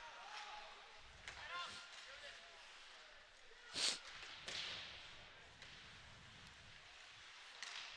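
A crowd murmurs and calls out in a large echoing rink.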